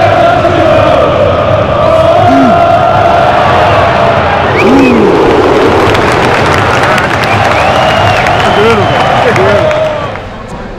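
Men in the crowd shout and whistle nearby.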